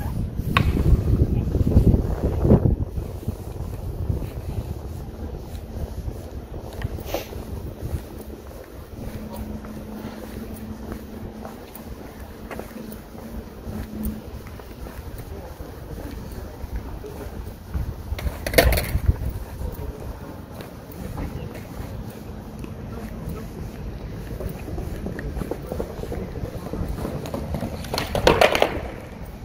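Wind rumbles and buffets outdoors, strongest at the start.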